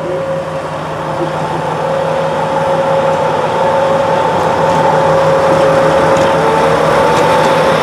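A diesel locomotive engine rumbles steadily as it rolls slowly past.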